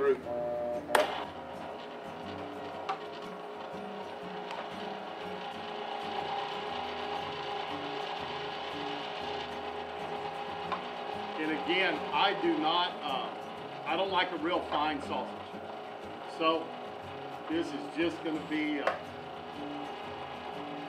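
An electric meat grinder hums steadily.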